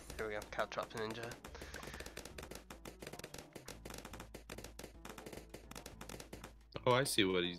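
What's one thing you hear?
Balloons pop in rapid, sharp little clicks.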